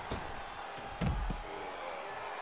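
A wrestler crashes onto the floor with a loud thud.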